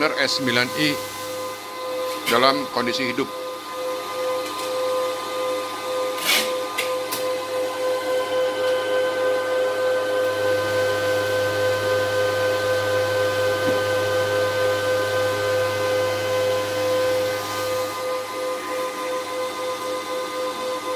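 Cooling fans whir and hum steadily at close range.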